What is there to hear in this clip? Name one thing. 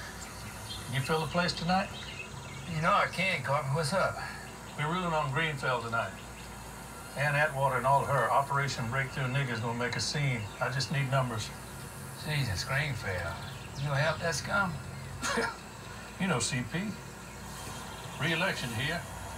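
Men talk with animation, heard through a television loudspeaker in a room.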